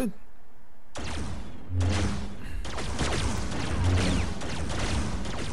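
Laser guns fire in quick bursts during a battle.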